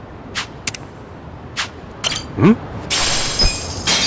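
A vending machine drops a can with a clunk.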